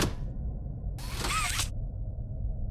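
A springy grabber arm shoots out with a quick whoosh.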